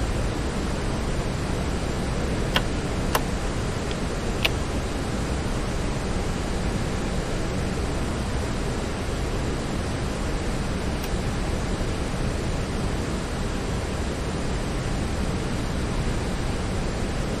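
Jet engines roar steadily in flight.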